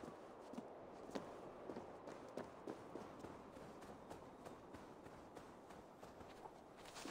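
Footsteps land and patter on stone and grass.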